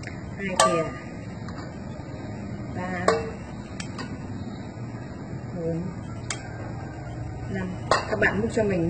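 A spatula clinks and scrapes against a metal bowl.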